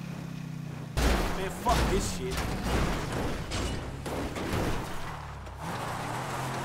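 A car crashes down onto the ground with a loud thud and scraping.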